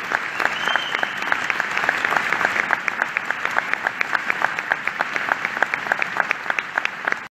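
A wind band plays a lively piece in a large, echoing hall.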